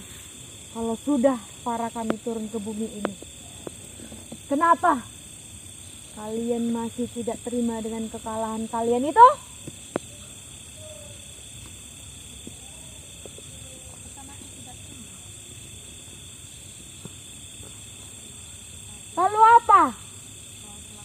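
A young woman speaks loudly and with emotion nearby.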